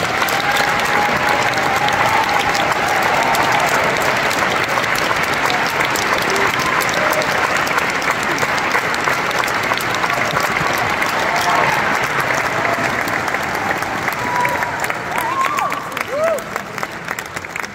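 People in an audience whoop and cheer.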